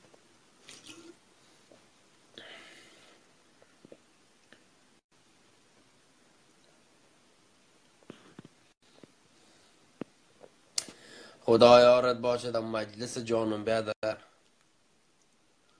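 A young man gulps a drink.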